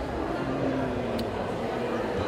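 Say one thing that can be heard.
A kiss smacks on a cheek.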